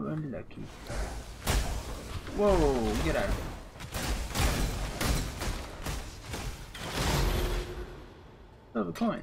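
Magic spells crackle and burst in quick, loud blasts during a fight.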